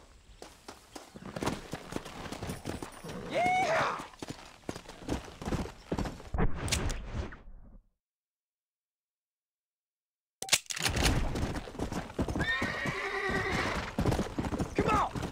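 A horse gallops with quick, thudding hoofbeats.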